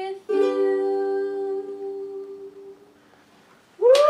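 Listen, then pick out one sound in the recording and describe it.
A young woman sings softly into a microphone.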